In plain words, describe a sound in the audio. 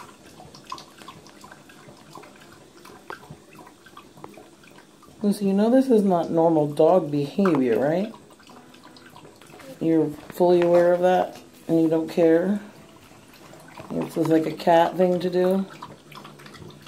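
A dog laps water from a running tap.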